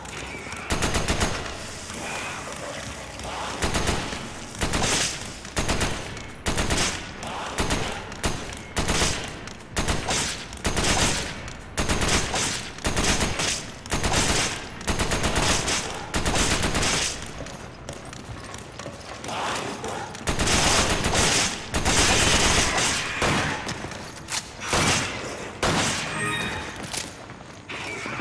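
Gunshots ring out again and again in short bursts.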